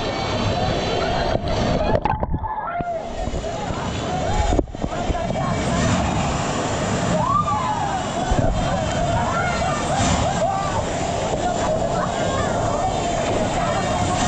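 A man splashes as he swims through the water.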